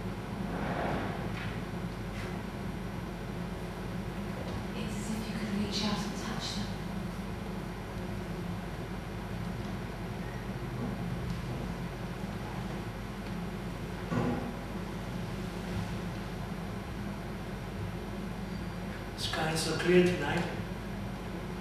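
A man speaks slowly with long pauses.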